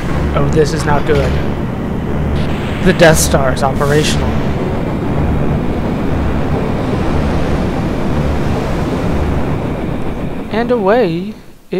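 An airship's engines rumble with a low, steady throb.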